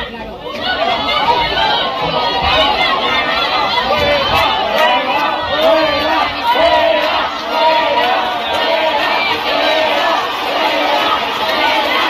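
A crowd of men and women shouts and yells in an echoing hall.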